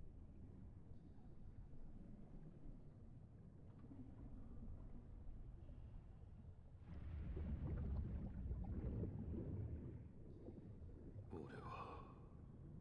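Water rumbles and churns in a low, muffled underwater drone.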